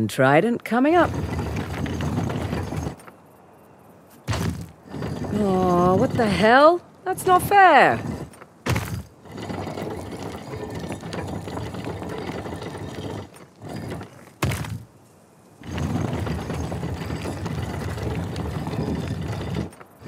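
A heavy stone dial grinds as it turns.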